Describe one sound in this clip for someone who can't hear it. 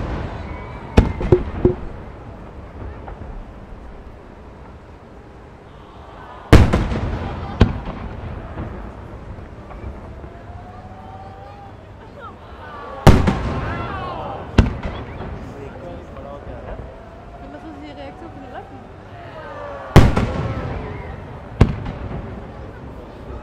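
Fireworks crackle and fizzle after bursting.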